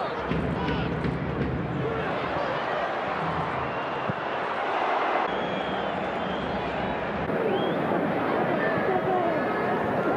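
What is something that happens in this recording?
A large stadium crowd roars and cheers steadily, outdoors.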